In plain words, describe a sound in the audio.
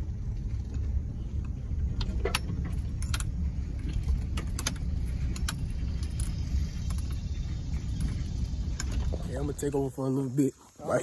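A car engine rumbles low as it drives.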